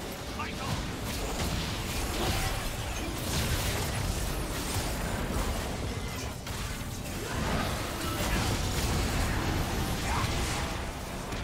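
Spells and attacks crackle and burst in a game battle.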